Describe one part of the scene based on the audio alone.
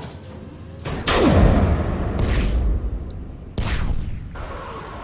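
Heavy guns fire with loud, deep booms.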